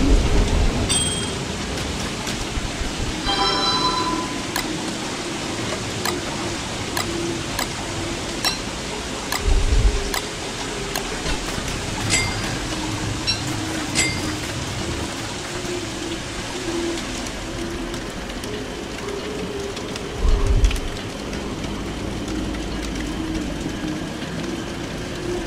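Rain falls.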